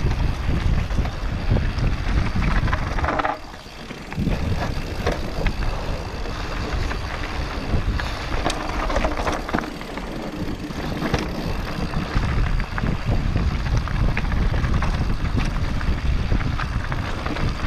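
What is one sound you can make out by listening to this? A bicycle's chain and frame clatter over bumps.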